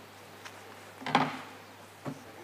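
A chair bumps loudly as a man stands up.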